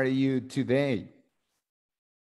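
A man speaks briefly over an online call, then falls silent.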